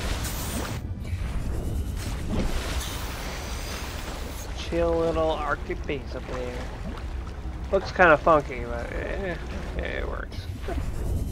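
Waves splash and slosh at the water's surface.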